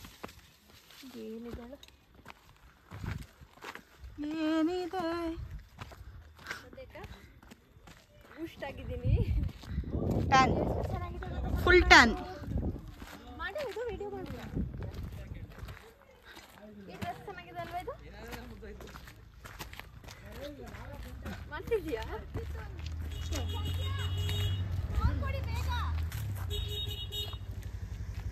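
Young women talk and laugh close by, outdoors.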